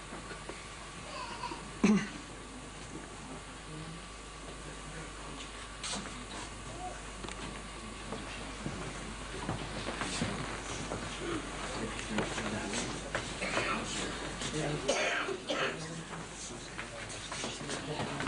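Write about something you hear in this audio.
A crowd of young men murmur quietly nearby.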